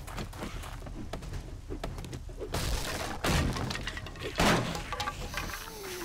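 A club bangs hard against a wooden door until it splinters.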